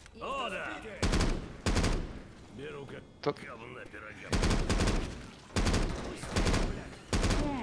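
A rifle fires in loud, rapid bursts.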